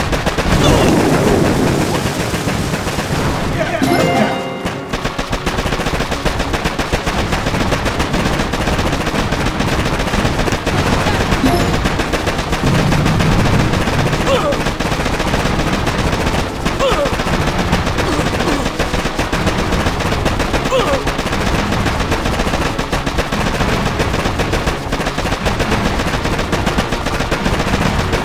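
Small arms fire crackles in rapid bursts.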